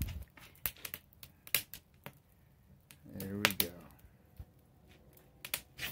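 A charcoal fire crackles and pops.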